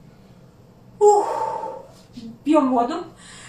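A young woman speaks loudly with animation, close by.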